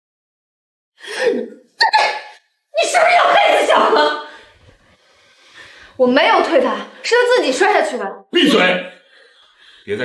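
A middle-aged woman argues angrily, close by.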